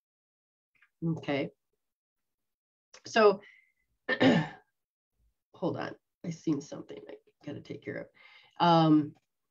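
A middle-aged woman speaks expressively through a microphone on an online call, in short bursts with pauses.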